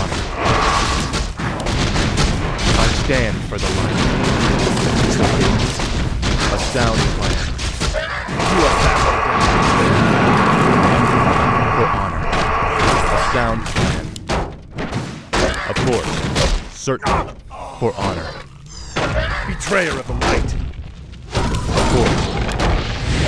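Weapons clash in a game fight.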